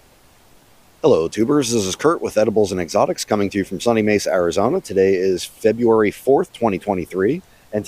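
A middle-aged man talks calmly and close by, outdoors.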